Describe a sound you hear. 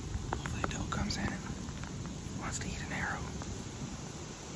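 A man speaks quietly up close to a microphone.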